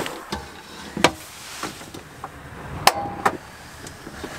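Metal knocks and clatters as a kettle is set on a stove.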